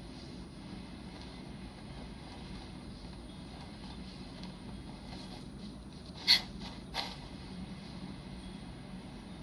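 Fingertips tap softly on a phone's touchscreen.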